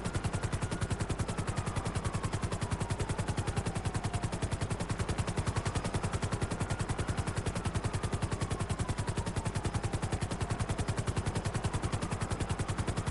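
A helicopter's turbine whines, sliding up and down in pitch.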